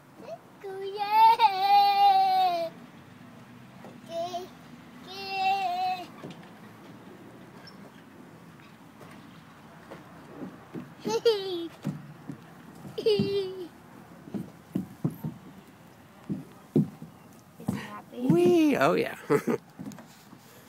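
A young boy calls out and squeals nearby.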